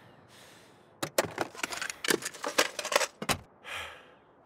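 Hands rummage and click through a glove box.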